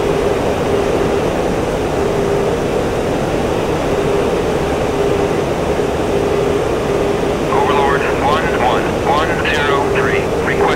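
A jet engine roars steadily from inside a cockpit.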